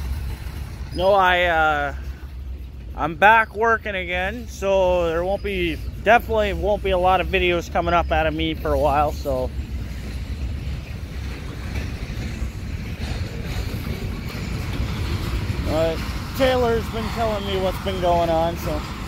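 A train horn blows loudly in long blasts.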